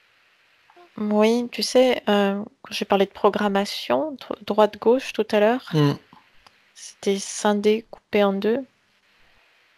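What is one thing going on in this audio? A woman speaks softly through a headset microphone over an online call.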